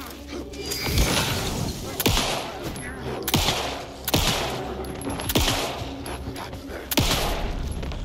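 A pistol fires loud single shots that echo.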